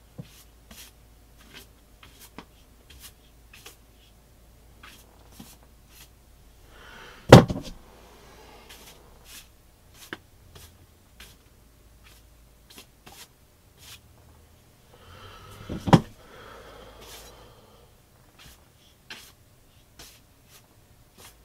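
A paintbrush dabs and scrapes against a canvas.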